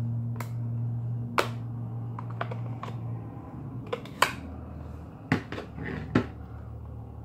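Cardboard packaging clicks and taps as hands handle it.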